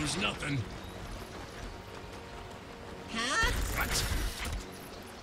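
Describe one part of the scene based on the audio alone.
Game spell effects whoosh and clash.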